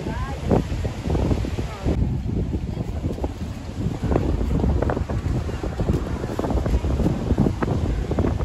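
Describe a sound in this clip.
Waves crash and roll onto the shore.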